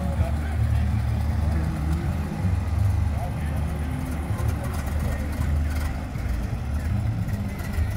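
A small motorbike engine putters nearby.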